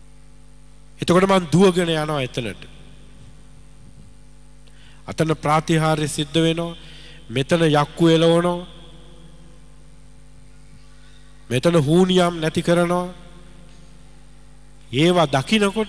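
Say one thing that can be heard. A man speaks with feeling into a microphone, heard through loudspeakers, in bursts with pauses.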